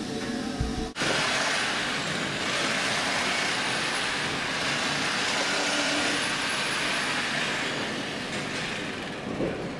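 A hand rubs wax onto a metal pipe.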